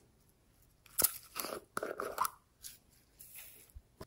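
Sprinkles pour from a plastic jar onto soft clay.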